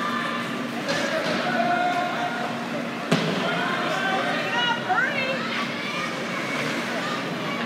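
Spectators call out and cheer in the echoing rink.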